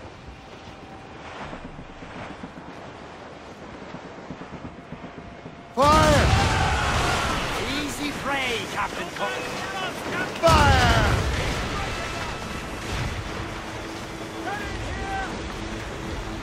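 Waves rush and splash around a sailing ship.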